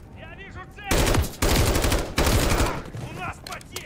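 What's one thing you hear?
A rifle fires a rapid burst of loud gunshots in an enclosed space.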